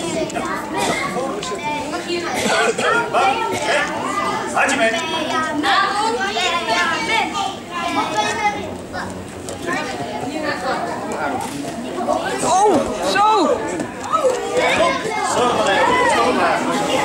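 A group of children and adults chatter nearby in an echoing hall.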